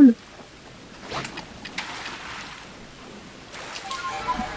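Water splashes as a game character wades through it.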